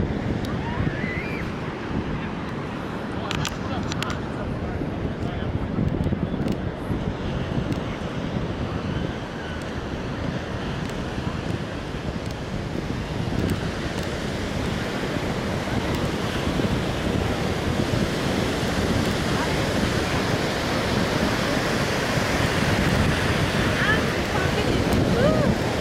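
Wind blows hard across the beach.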